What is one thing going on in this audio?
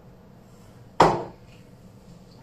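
A foot stamps once on a wooden floor.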